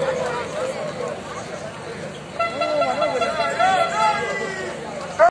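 A large crowd of men chants and sings loudly outdoors.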